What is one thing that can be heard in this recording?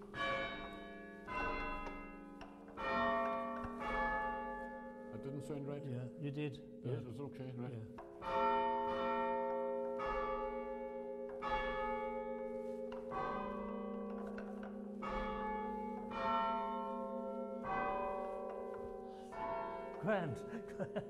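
Church bells ring out a slow tune, one clear strike after another, ringing on.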